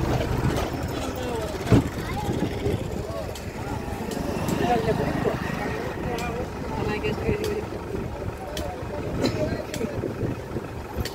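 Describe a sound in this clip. A crowd of men talk and murmur nearby outdoors.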